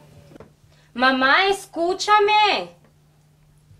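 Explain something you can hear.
A young woman answers heatedly.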